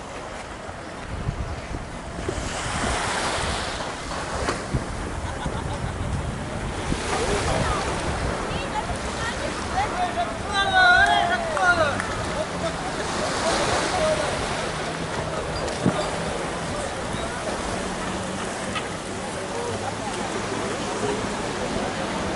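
Wind gusts rush outdoors.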